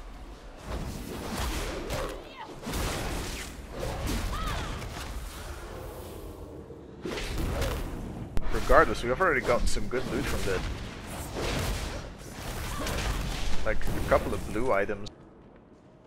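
Magic spells crackle and burst during a fight.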